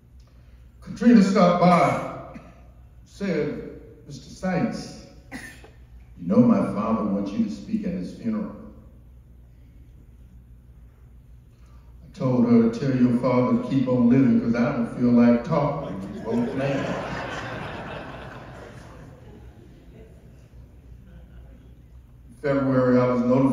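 An elderly man speaks slowly and earnestly into a microphone, with long pauses.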